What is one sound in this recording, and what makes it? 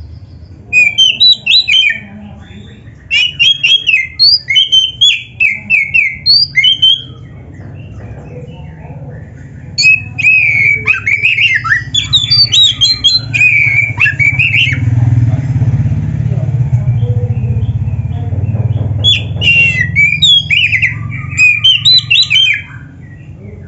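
A songbird sings loud, varied whistling phrases in short bursts.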